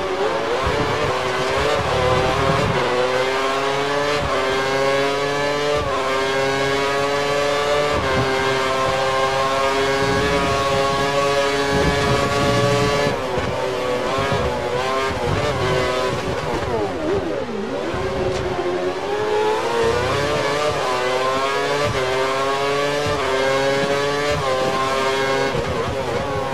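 A racing car engine screams at high revs, rising through the gears with sharp shifts.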